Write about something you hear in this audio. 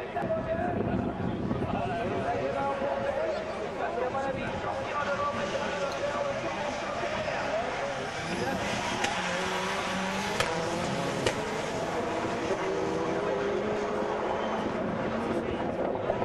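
Racing car engines roar and whine as they speed past.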